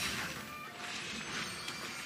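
A sword strikes with a sharp magical burst.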